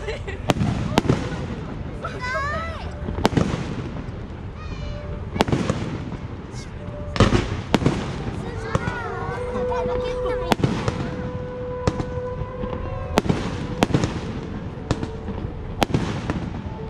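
Fireworks shells burst with sharp booms in the distance.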